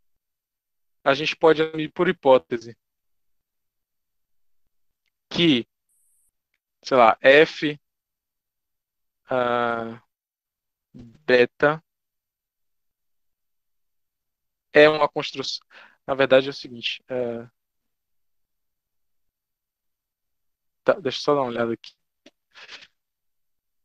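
A man speaks calmly in short phrases over an online call, with pauses between.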